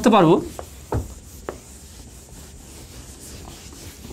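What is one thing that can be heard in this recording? A cloth rubs on a whiteboard.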